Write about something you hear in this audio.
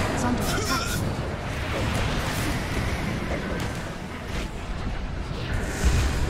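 Game spell effects crackle and burst during a battle.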